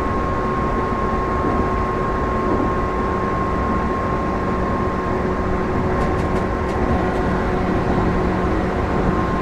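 A train motor hums steadily.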